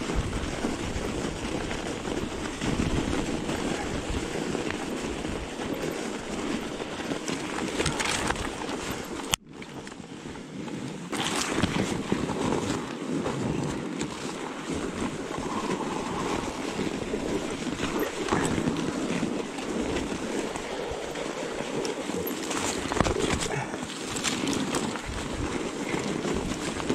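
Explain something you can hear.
Bicycle tyres crunch through deep snow.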